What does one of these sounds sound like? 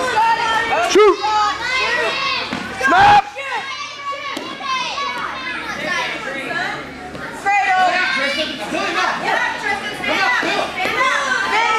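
Wrestlers thud onto a mat.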